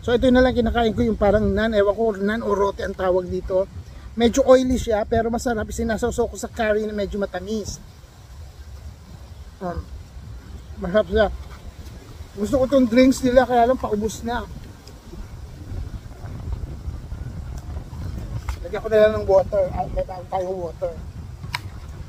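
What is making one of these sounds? A middle-aged man talks close to the microphone with animation.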